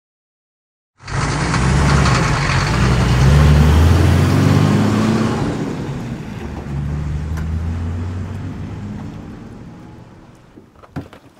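A van engine rumbles as the van drives past and slows.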